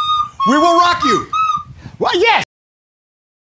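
A woman plays a simple tune on a recorder.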